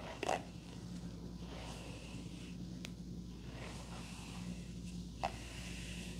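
A brush sweeps softly through hair.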